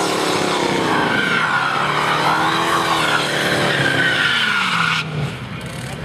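Tyres squeal as a car spins its wheels in a burnout.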